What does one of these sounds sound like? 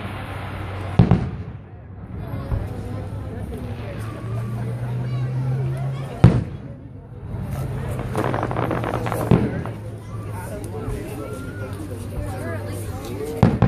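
Fireworks boom in the distance.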